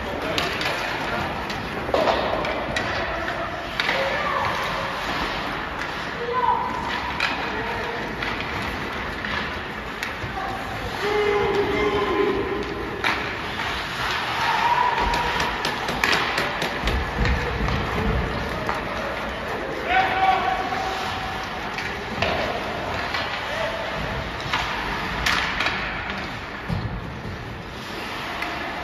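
Skates scrape and carve across ice in a large echoing arena.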